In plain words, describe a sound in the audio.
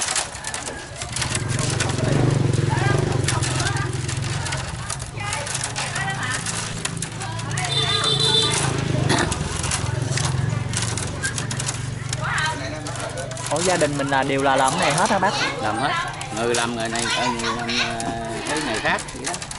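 Bamboo strips rustle and click as they are woven.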